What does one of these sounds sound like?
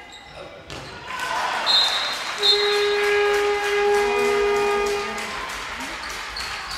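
Spectators cheer and clap loudly.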